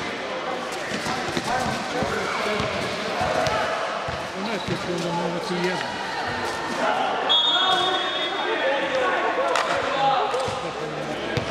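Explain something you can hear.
Sounds echo through a large indoor hall.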